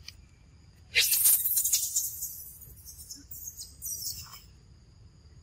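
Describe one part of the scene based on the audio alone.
A baby monkey scrambles over rustling leaves.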